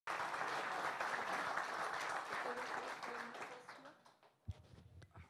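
An audience applauds in a hall, and the applause fades.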